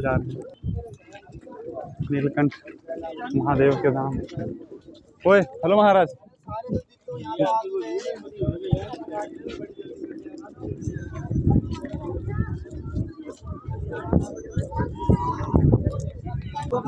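Several men and women talk nearby in a crowd outdoors.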